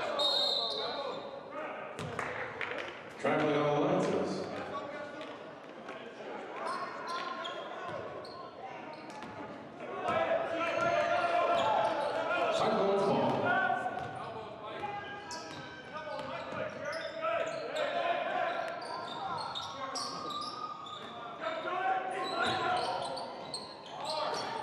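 Sneakers squeak on a wooden floor in an echoing gym.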